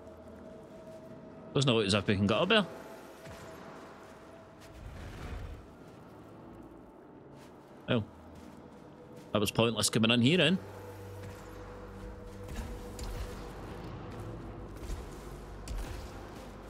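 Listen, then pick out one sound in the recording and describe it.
Heavy footsteps thud on hard ground.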